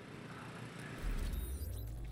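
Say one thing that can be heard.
A glitchy electronic whoosh swells up.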